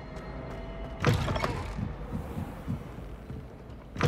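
A heavy wooden door creaks open.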